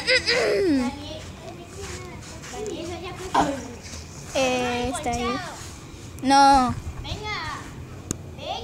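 A young child squeals and babbles nearby in high, singsong calls.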